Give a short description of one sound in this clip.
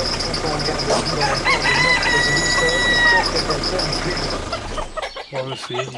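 Hens cluck.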